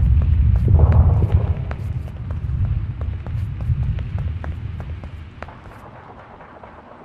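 Footsteps crunch quickly over dry dirt and leaves.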